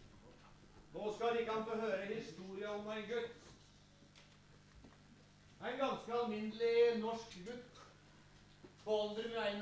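A man speaks loudly and theatrically in a hall with a slight echo.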